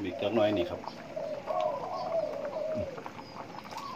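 Liquid pours from a bowl back into a pot.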